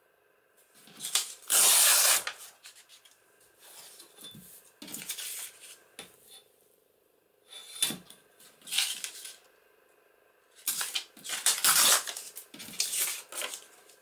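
Paper tears in a long rip along a metal ruler.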